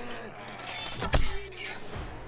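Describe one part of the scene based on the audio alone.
A bow string twangs as an arrow is loosed.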